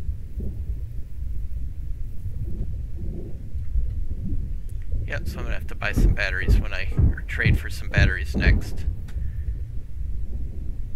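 Wind blows steadily with a low rumble.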